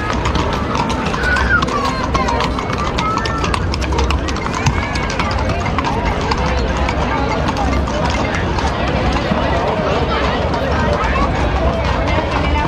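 Horse hooves clop on cobblestones.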